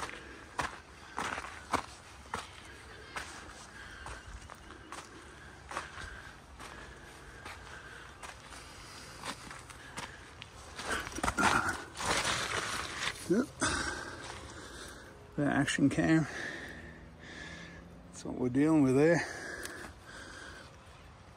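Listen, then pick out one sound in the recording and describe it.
Footsteps crunch on dry dirt and loose stones.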